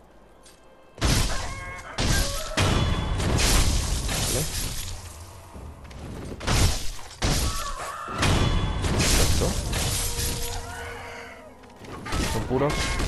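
Steel swords clash and slash in a fight.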